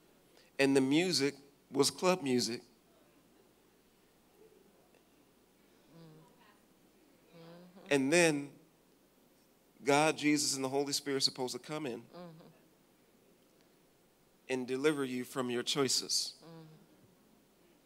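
A man speaks with animation into a microphone, heard through loudspeakers in a large hall, with pauses between phrases.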